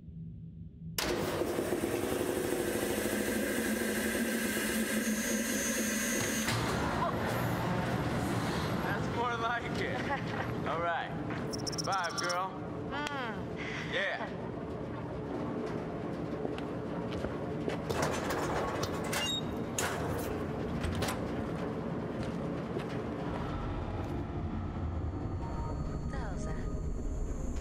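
A machine starts up with a loud, steady roar.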